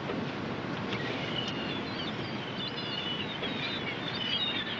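Seagulls call overhead.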